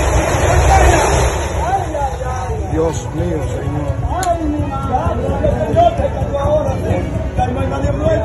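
Several men shout excitedly nearby.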